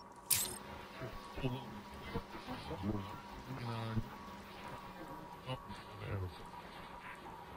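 A man's voice speaks faintly through a crackling radio.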